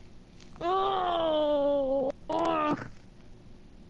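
A car engine revs and then drops in pitch.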